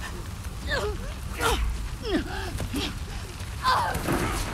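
A young woman cries out in distress, close by.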